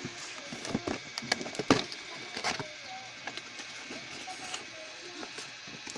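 Hands handle a cardboard box, its flaps scraping and thudding.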